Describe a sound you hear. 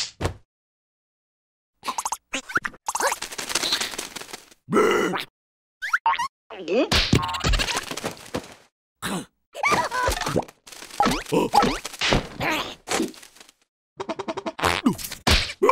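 A lower, cartoonish voice grumbles and cries out.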